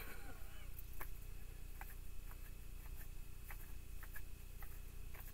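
Cards are shuffled softly in a woman's hands.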